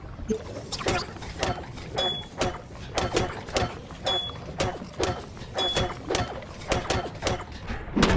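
Metal pipes clang and thud in a fight.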